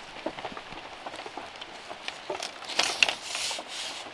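Bamboo strips rustle as they are woven together.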